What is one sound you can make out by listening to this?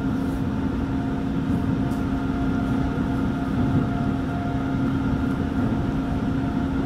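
The wheels of an electric commuter train rumble on the rails, heard from inside a carriage.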